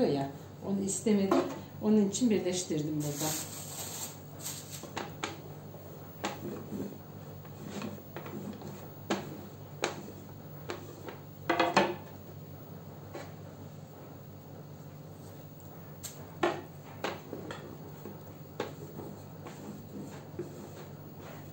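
A wooden rolling pin rolls over dough on a board.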